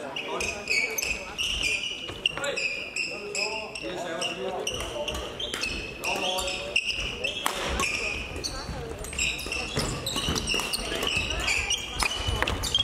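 Badminton rackets strike a shuttlecock with crisp pops.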